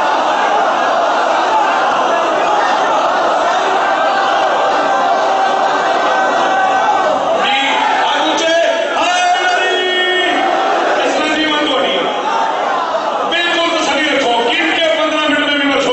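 A man chants loudly and with passion through a microphone, in an echoing hall.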